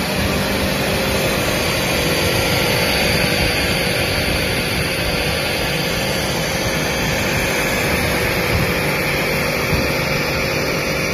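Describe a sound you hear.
Industrial machinery hums and whirs steadily in a large echoing hall.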